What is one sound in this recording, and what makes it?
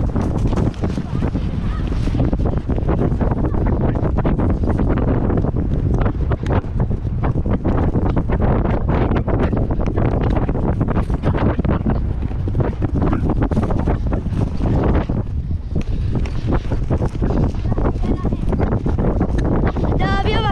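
Horse hooves pound rapidly on turf close by.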